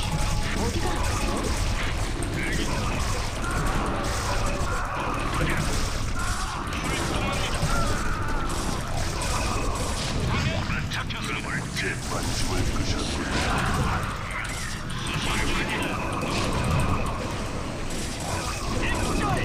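Small explosions burst now and then.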